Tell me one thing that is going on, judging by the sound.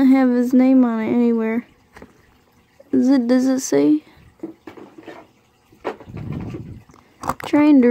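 Small plastic toy wheels roll softly over carpet.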